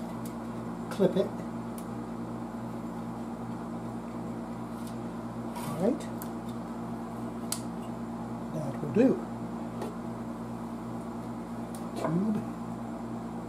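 Glass valves clink and scrape as they are pulled from their sockets.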